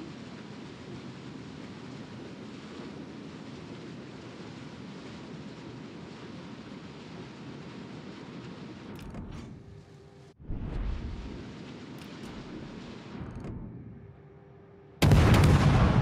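Waves wash and rush against a ship's hull.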